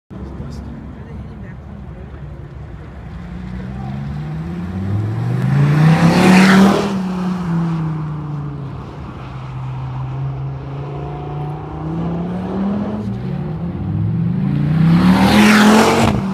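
A sports car engine roars close by, revving up and down as the car speeds past.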